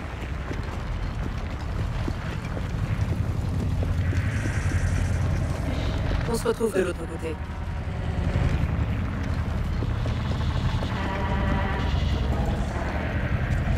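Footsteps run quickly over cobblestones.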